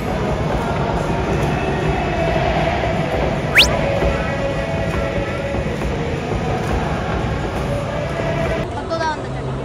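A large stadium crowd murmurs and cheers in a big echoing space.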